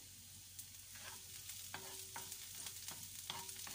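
A wooden spatula scrapes and stirs in a frying pan.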